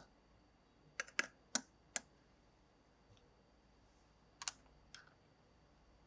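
Small plastic toy pieces click and tap together.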